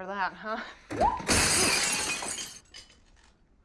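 A woman crashes down onto a wooden table.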